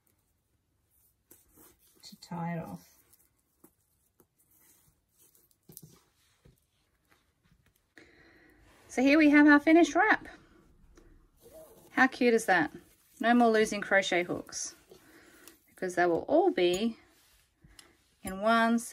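Fabric rustles softly as it is rolled and handled.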